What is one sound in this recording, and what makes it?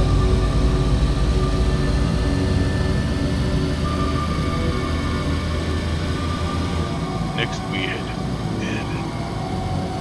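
Tyres roll on a paved road.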